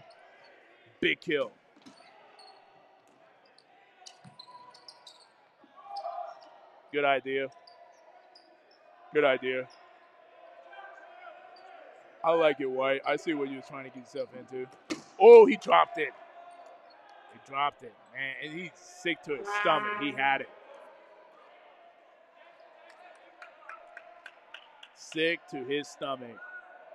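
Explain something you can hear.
Young men shout loudly in an echoing hall.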